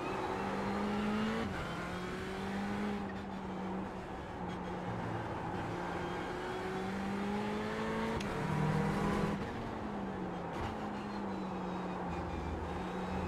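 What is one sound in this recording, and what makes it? A racing car engine revs up and drops in pitch as it shifts gears.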